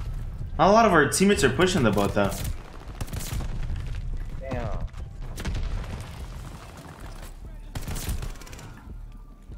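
Rapid gunfire bursts from a video game.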